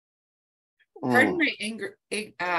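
A young woman talks over an online call.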